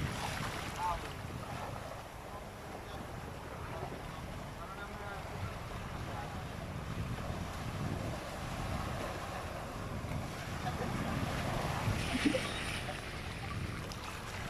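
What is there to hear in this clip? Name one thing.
Foamy water swirls and hisses around rocks close by.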